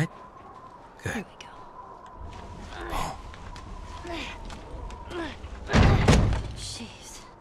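A person clambers onto a wooden crate with thumps and scrapes.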